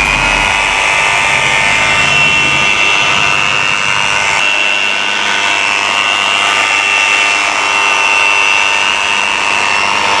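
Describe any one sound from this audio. An electric polisher whirs steadily with a high whine.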